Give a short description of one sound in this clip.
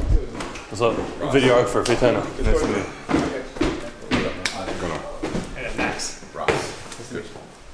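A man talks and laughs nearby.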